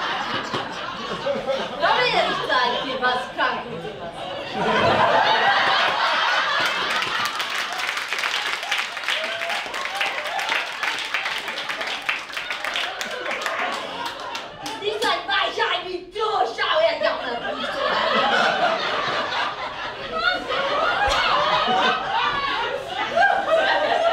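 A woman speaks with animation on stage in a hall.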